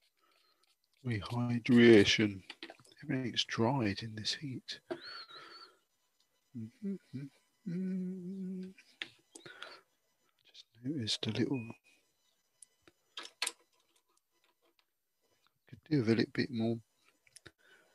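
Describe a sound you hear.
A man talks calmly through a microphone.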